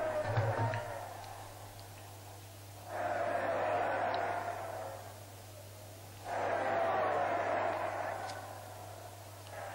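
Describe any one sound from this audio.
A large crowd chants in loud rhythmic bursts outdoors.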